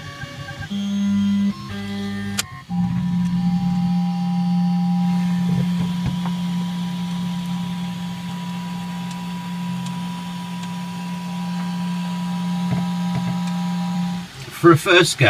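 A printer's motors hum with a steady whine.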